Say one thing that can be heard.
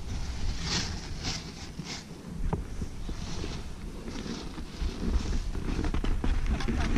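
Skis scrape and hiss over crusty snow.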